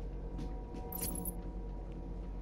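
An electronic interface chimes with a short bright tone.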